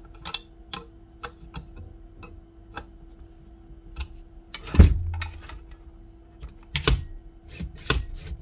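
Metal tools click and clink against a power tool.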